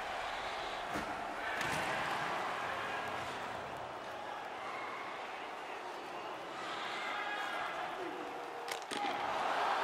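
A hockey stick clacks against a puck.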